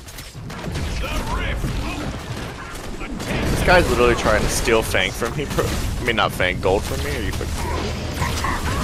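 Magic blasts crackle and explosions boom.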